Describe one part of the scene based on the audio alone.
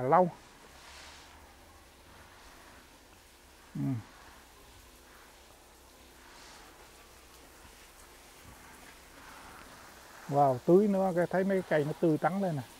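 A hose sprayer hisses as water sprays out.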